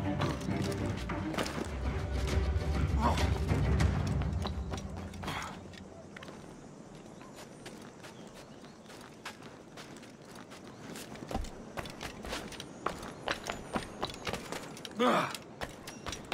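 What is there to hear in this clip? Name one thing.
Footsteps patter quickly across roof tiles.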